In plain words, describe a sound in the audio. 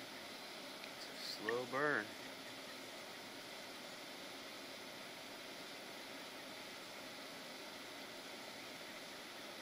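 A firework fuse fizzes quietly in the distance.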